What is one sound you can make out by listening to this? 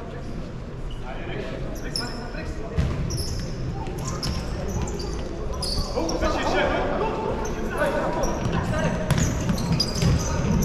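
Spectators murmur and chat nearby.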